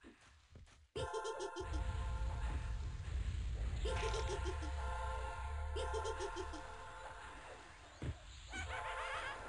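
A magic spell crackles and rings loudly.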